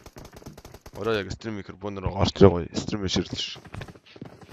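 A young man speaks loudly and with animation into a close microphone.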